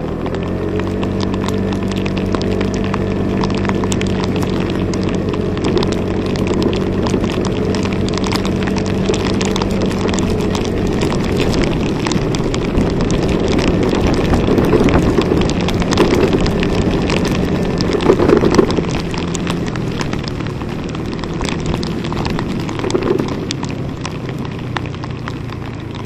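Raindrops patter on a plastic cover.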